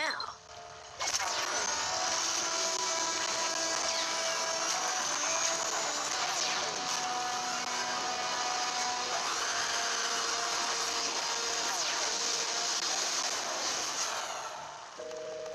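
A whooshing, shimmering transformation effect rises and swirls.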